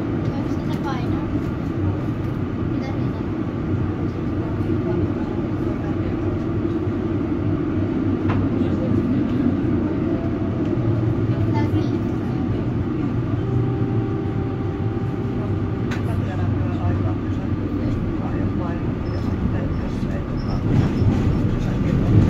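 A tram rumbles steadily along its tracks, heard from inside.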